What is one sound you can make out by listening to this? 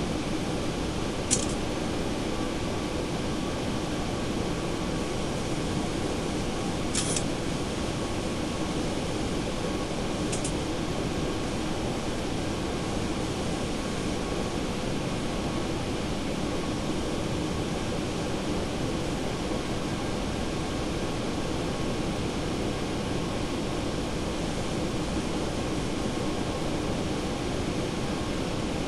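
A jet airliner's engines roar steadily from inside the cockpit.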